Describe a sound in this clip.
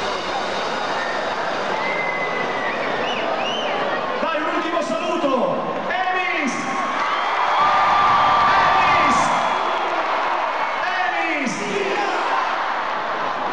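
Loud music plays through powerful loudspeakers.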